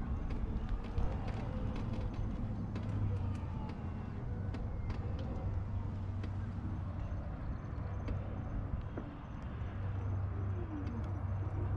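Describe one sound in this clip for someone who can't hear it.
Wind blows across the microphone outdoors with a low, steady rumble.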